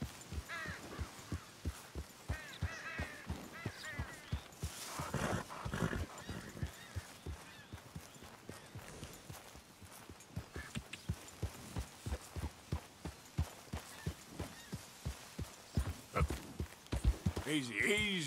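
A horse's hooves clop as it walks on grass and dirt.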